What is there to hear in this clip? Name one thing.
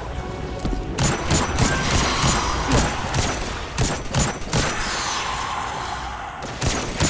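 A rifle fires loud single shots at an uneven pace.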